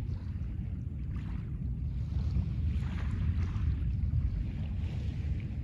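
Small waves lap gently on a pebble shore.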